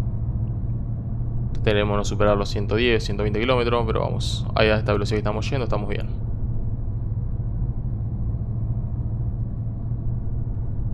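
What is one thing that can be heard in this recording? A truck engine hums low and steady while driving.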